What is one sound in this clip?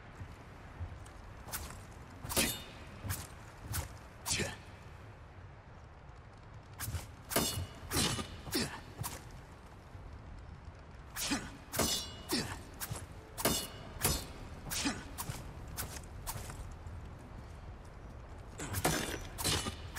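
Footsteps crunch slowly across a gritty floor.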